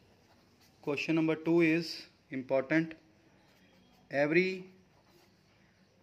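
A felt-tip pen scratches softly on paper.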